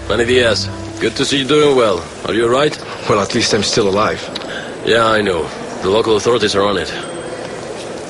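A young man speaks calmly in a room.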